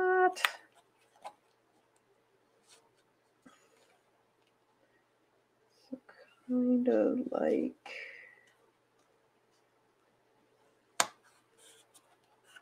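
Paper rustles and crinkles softly as it is handled.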